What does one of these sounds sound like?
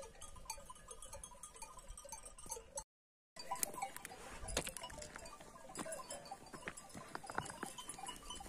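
Bells on a flock of grazing sheep clink and tinkle nearby.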